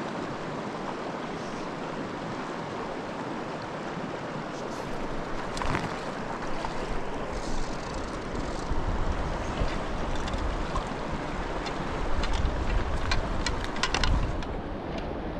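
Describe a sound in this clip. A shallow stream rushes steadily over rocks.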